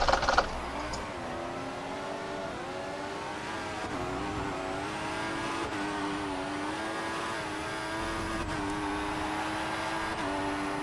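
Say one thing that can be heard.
A racing car engine whines and climbs in pitch, dropping briefly at each gear change.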